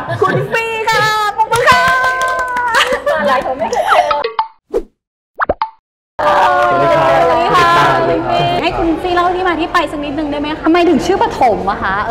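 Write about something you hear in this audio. A young woman talks with animation and cheer into a close microphone.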